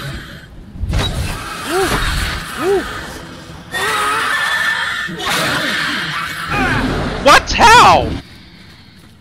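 A creature lets out eerie, wavering shrieks.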